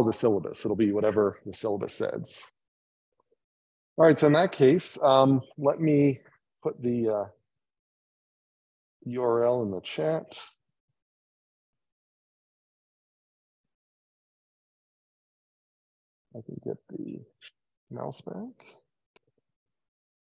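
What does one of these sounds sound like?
A man lectures through a microphone, speaking calmly with pauses.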